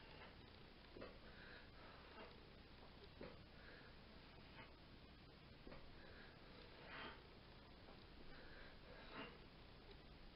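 A man breathes out sharply with effort, close by.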